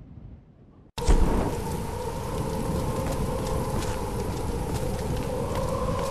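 A torch flame roars and crackles steadily.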